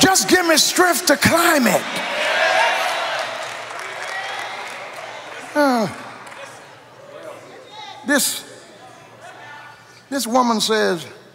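A man preaches with fervour through a microphone, his voice echoing in a large hall.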